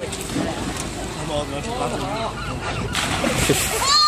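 A young woman jumps into the sea with a splash.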